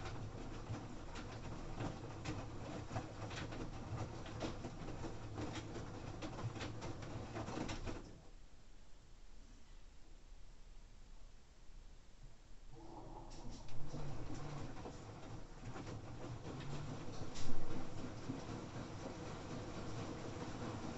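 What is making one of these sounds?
Laundry tumbles and thumps inside a washing machine drum, pausing briefly.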